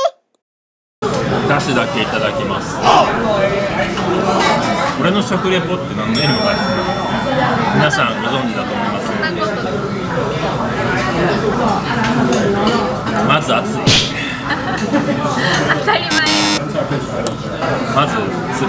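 Many voices chatter in the background, in a busy room.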